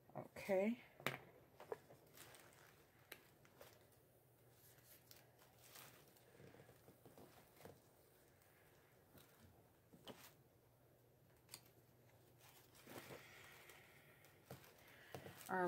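Plastic wrap rustles and crinkles under hands close by.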